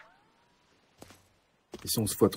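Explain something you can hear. A weapon clicks as it is switched.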